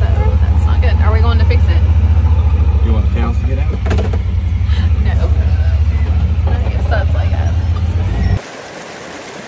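An engine rumbles low and steady.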